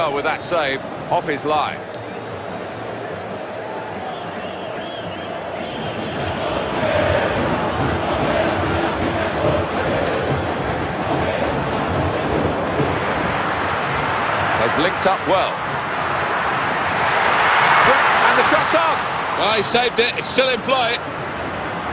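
A large crowd roars steadily in a stadium, swelling louder at times.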